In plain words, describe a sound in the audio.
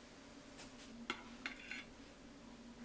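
A metal knife clinks against a plate.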